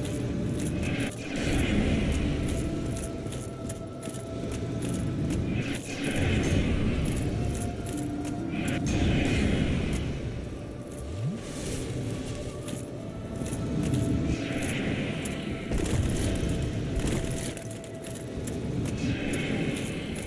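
Magic blasts whoosh and crackle in bursts.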